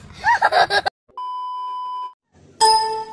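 A steady high test-tone beep sounds.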